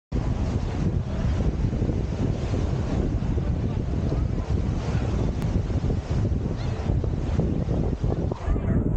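Strong wind rumbles and buffets outdoors.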